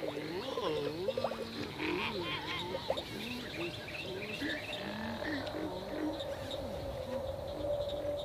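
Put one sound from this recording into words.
Squeaky, cartoonish voices chatter and cry out excitedly close by.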